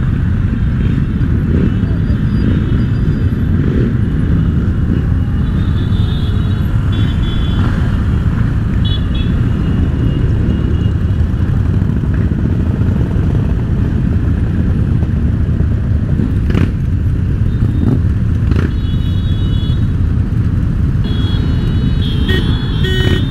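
Motorcycle engines rumble steadily close by.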